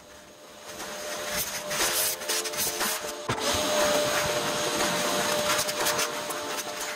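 A vacuum hose sucks up plastic chips with a steady rushing hiss.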